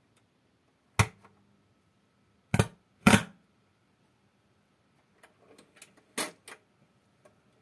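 Sharp clicks and knocks come from hands working a record player.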